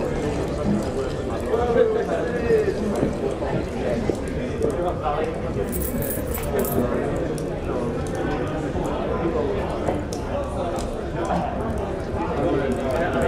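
A crowd of men and women chatter and murmur all around in a busy room.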